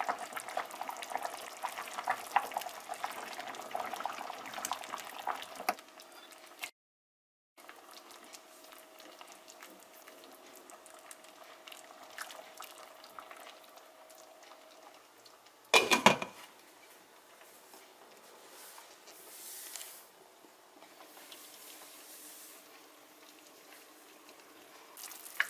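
Soup bubbles and boils steadily in a pot.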